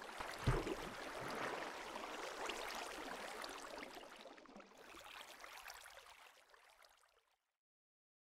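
Water bubbles and sloshes in a game.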